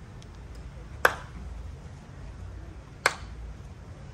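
A man claps his hands sharply twice.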